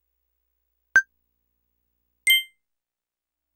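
Two short electronic chimes ring out, one after the other.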